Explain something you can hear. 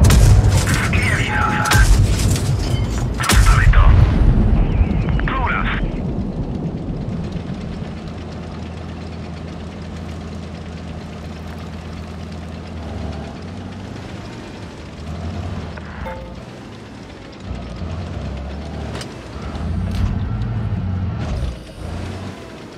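A tank engine rumbles steadily as it drives.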